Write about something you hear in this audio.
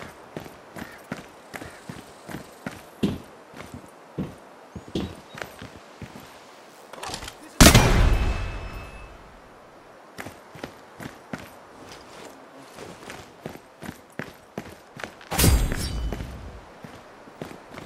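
Footsteps thud and clank on metal stairs and hard ground.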